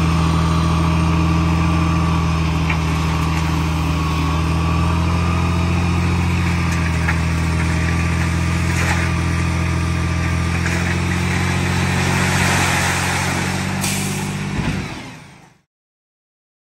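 A diesel dump truck engine runs hard as the truck raises its bed.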